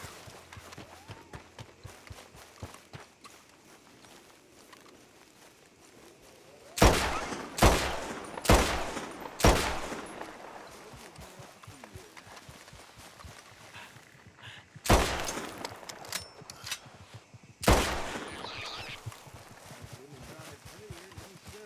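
Footsteps rustle through grass at a run.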